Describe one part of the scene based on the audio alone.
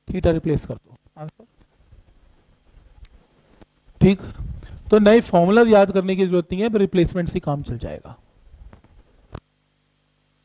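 A man lectures with animation, heard close through a clip-on microphone.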